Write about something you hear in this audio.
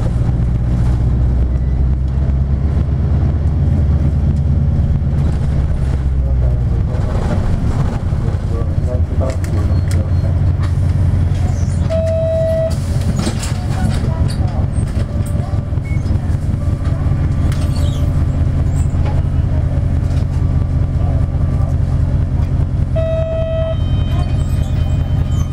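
A vehicle engine rumbles steadily from inside the vehicle.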